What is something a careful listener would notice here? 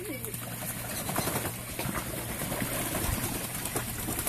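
A duck flaps its wings over water.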